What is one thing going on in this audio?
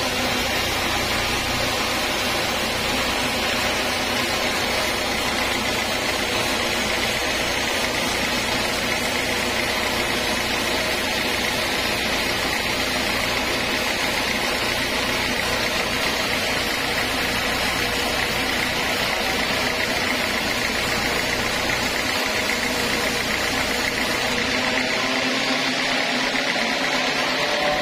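A band sawmill blade whines through a teak log.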